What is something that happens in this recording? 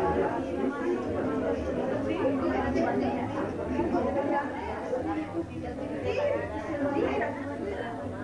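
Several women chat and talk over one another nearby.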